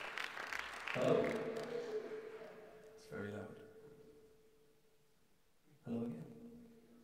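An acoustic guitar is strummed in single chords that ring out and fade in an echoing room.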